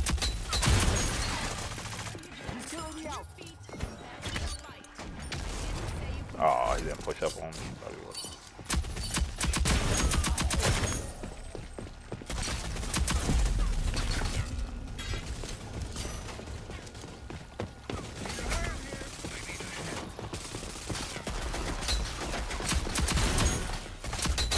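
Rifles fire in rapid bursts of gunshots.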